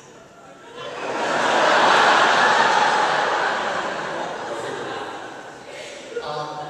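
An audience applauds in a large hall, swelling and then fading.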